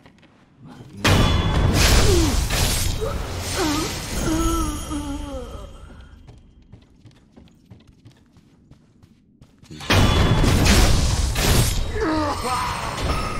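A sword slashes and clangs against an enemy.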